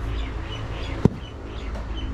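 A metal mold knocks down onto hard ground.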